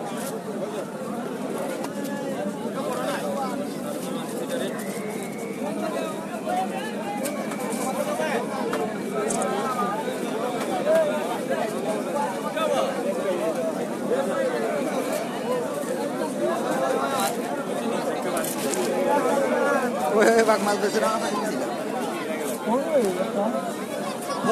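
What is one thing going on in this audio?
Many men and women chatter all around in a busy, crowded babble.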